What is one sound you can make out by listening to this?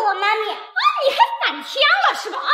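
A young boy speaks up loudly and firmly, close by.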